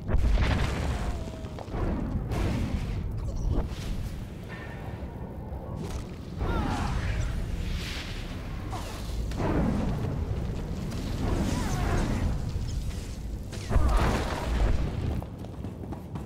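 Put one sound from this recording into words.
Energy blades hum and clash in a fast fight.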